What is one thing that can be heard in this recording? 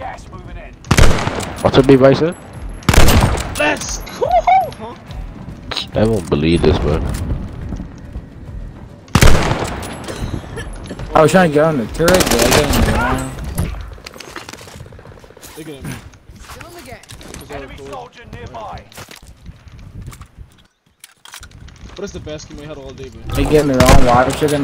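Rifle shots bang loudly, a few times.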